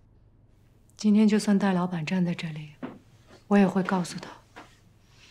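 A woman speaks calmly and firmly nearby.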